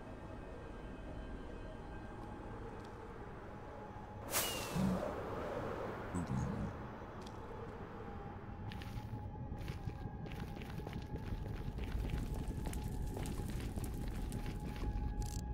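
Lava pops and bubbles.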